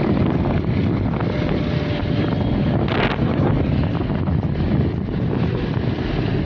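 A motorcycle engine rumbles steadily up close while riding.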